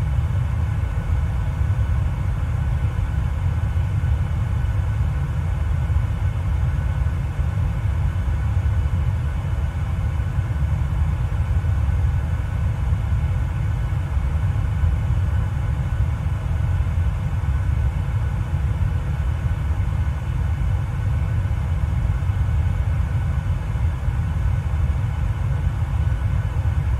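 A jet engine roars steadily in flight.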